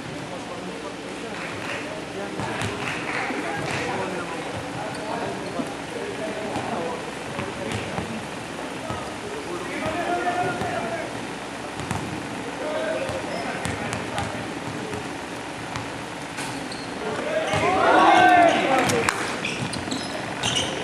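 Young men call out and shout to each other in a large echoing gym.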